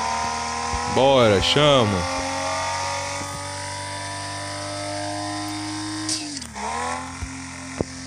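A sports car engine blips its revs through gear changes.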